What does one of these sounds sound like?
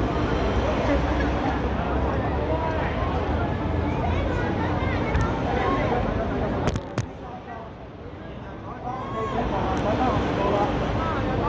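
A crowd of men and women talk and shout nearby outdoors.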